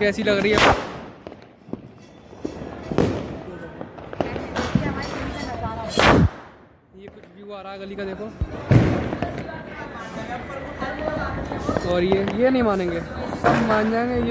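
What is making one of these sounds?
Sharp bangs ring out and echo between buildings.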